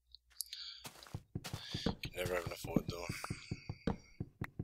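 An axe chops into wood with rapid knocks.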